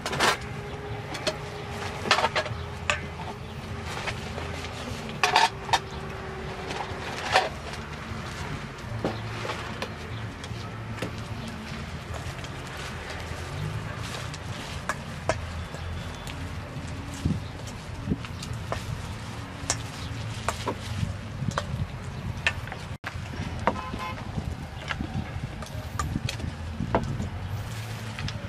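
A metal spoon clinks and scrapes against a metal bowl.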